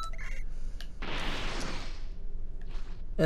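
A rushing energy surge whooshes up and fades.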